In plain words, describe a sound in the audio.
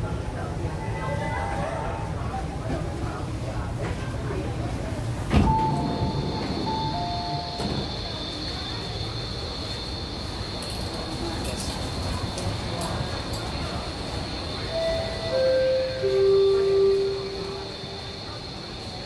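A train rumbles steadily as it rolls along and slows to a stop.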